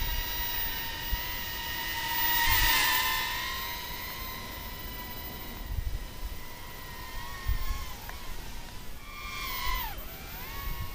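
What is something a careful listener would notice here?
A small drone buzzes with a high, steady whine that rises and falls in pitch.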